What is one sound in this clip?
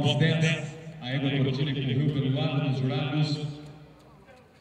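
A man speaks loudly and with animation through a loudspeaker.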